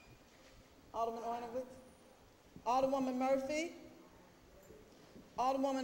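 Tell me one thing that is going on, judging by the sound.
A man speaks through a microphone in a large echoing chamber, reading out in a steady voice.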